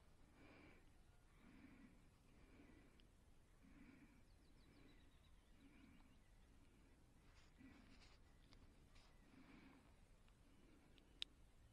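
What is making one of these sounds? Fingers fiddle softly with a fishing hook and bait.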